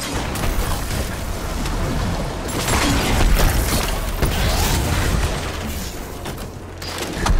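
Gunfire bangs out in rapid bursts.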